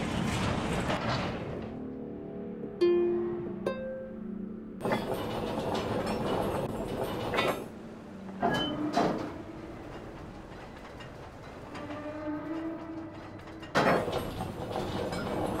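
A heavy wooden lever creaks and grinds as it turns.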